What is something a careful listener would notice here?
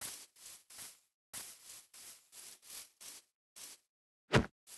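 Footsteps tap softly on the ground.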